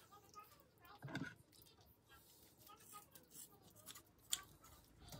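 Kitchen scissors snip through meat.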